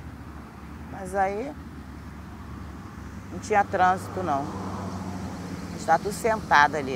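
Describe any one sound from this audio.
A woman speaks quietly and haltingly, close by.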